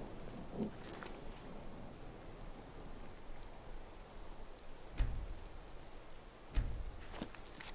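Game menu clicks sound sharply a few times.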